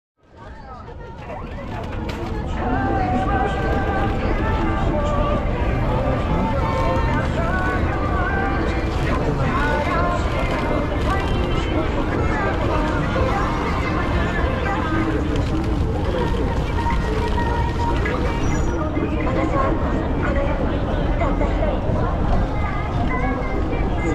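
Many footsteps shuffle on pavement.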